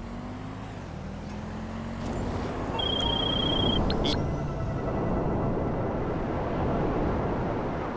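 A jet-powered hoverbike's engine hums and whines as it flies.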